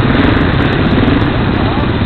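A motorcycle engine runs close by with a rough rumble.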